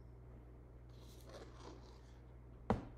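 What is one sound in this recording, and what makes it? A knife scrapes across frosting on a cake.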